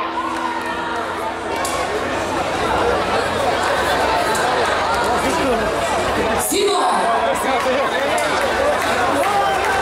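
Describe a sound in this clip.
A live band plays loudly through a large sound system.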